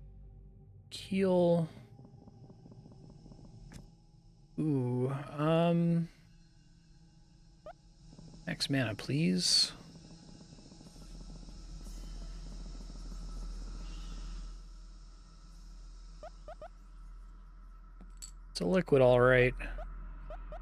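A man speaks casually and close to a microphone, in short bursts.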